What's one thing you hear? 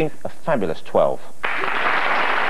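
A man speaks loudly with animation, close by.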